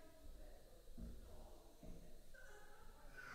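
Footsteps thud on a wooden floor in a large, echoing room.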